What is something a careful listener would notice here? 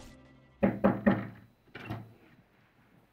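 Pillows thump softly as they are tossed onto a bed.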